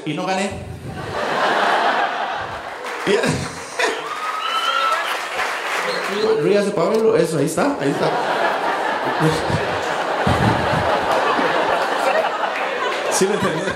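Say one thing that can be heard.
An audience laughs and claps.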